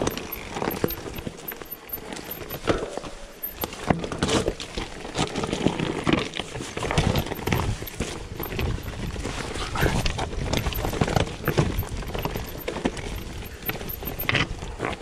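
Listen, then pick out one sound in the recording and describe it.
Bicycle tyres crunch and roll over loose rocks.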